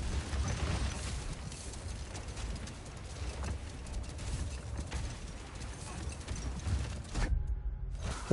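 A sled slides over snow.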